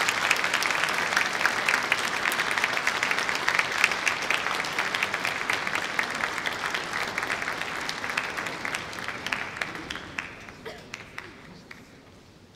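An audience applauds in a large echoing hall, then the clapping slowly fades away.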